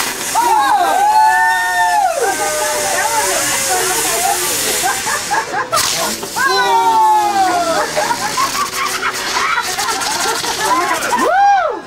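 Fireworks whistle shrilly, the pitch sliding down.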